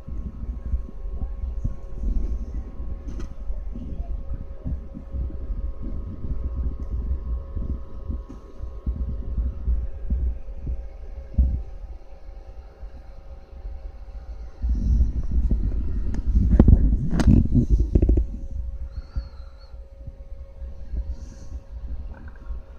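Computer fans whir with a steady hum.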